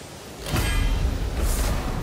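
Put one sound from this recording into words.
A magical chime rings out with a soft shimmer.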